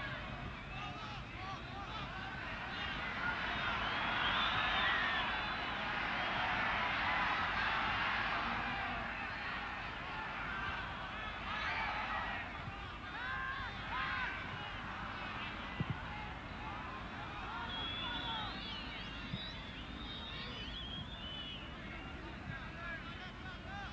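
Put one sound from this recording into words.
A large crowd roars and cheers across a stadium.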